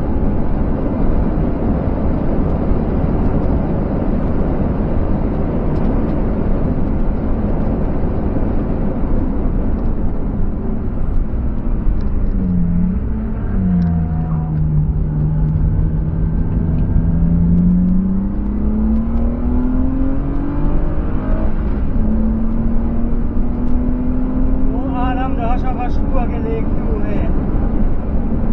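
A car engine drones loudly from inside the cabin, dropping in pitch as the car slows and then climbing steadily as it speeds up.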